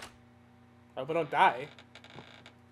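Heavy wooden double doors creak open slowly.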